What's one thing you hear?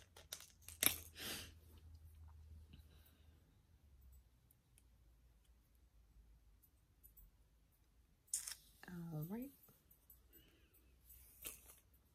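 Yarn rustles softly as a crochet hook works it.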